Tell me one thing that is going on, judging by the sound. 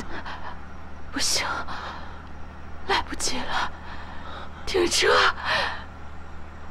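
A young woman speaks weakly, sobbing.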